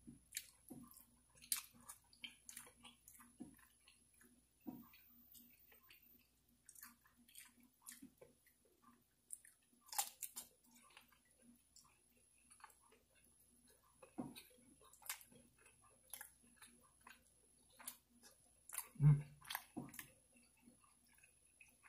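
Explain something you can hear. A man chews food and smacks his lips close to a microphone.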